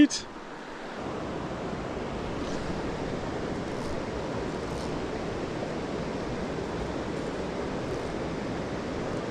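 A stream flows and gurgles steadily nearby.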